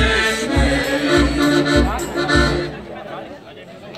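Lively music with a thumping beat plays loudly over outdoor loudspeakers, then stops.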